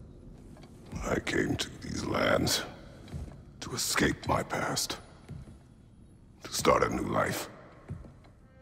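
A man speaks in a deep, slow, gravelly voice.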